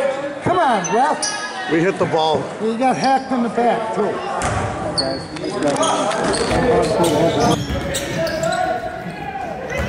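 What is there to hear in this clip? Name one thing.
Spectators shout and cheer nearby in an echoing gym.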